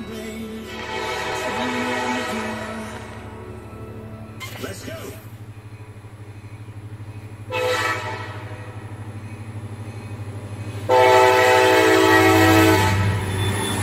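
A train horn blows loud, long blasts.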